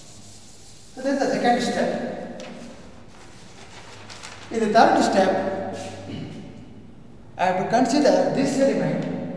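An elderly man speaks calmly and clearly, explaining in a lecture.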